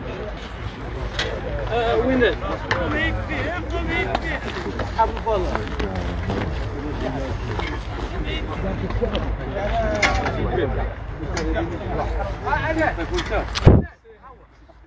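Several men talk loudly and over one another outdoors.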